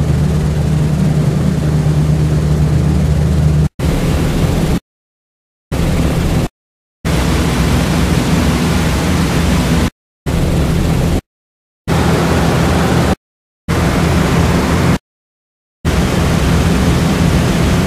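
Heavy propeller engines drone steadily, cutting out now and then.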